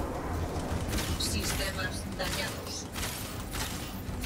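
Electric blasts crackle and boom.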